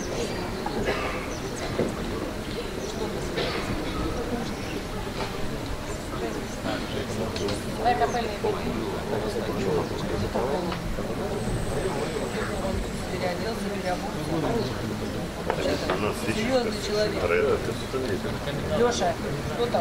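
A middle-aged woman sings into a microphone through loudspeakers outdoors.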